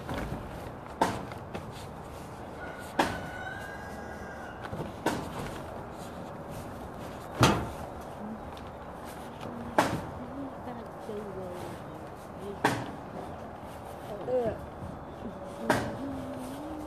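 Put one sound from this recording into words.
Sharp thumps sound on plastic sheeting.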